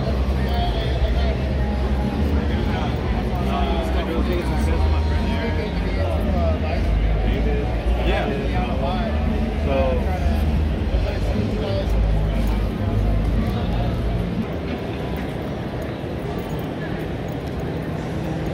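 A crowd murmurs and chatters in a large, echoing hall.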